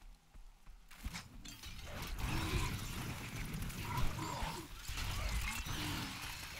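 Fighting creatures clash with thuds and splatters amid a rushing roar.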